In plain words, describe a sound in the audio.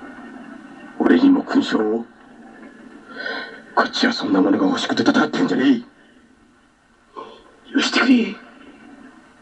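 A second man answers in a low, strained voice.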